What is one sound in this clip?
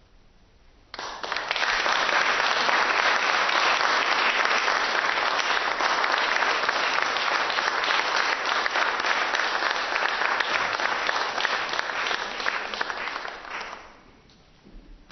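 An audience applauds warmly.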